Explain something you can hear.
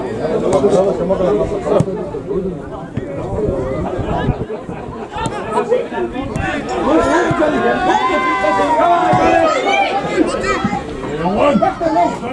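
Men shout and call out across an open field outdoors.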